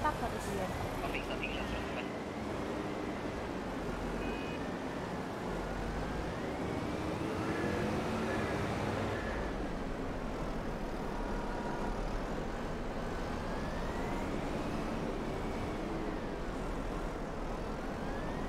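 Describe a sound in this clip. A wheel loader's diesel engine rumbles and revs.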